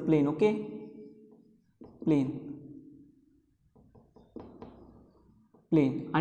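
A man speaks calmly in a short burst, with a slight echo.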